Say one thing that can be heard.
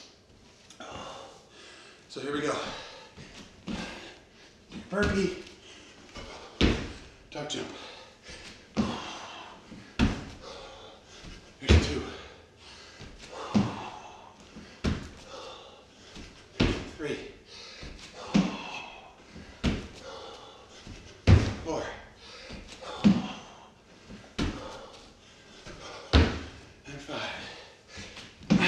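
Feet thump on a wooden floor again and again.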